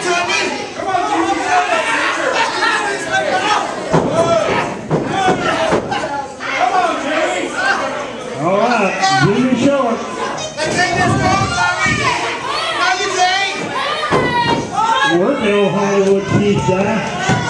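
Wrestlers thud onto the ring mat.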